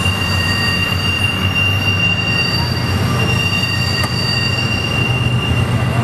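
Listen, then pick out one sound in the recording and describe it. Train wheels squeal and screech on the rails.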